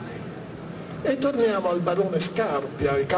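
A middle-aged man speaks calmly through a microphone and loudspeaker.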